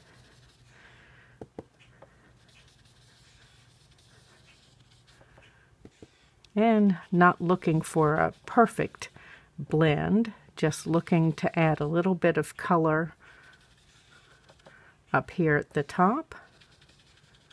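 A foam dauber dabs softly on paper.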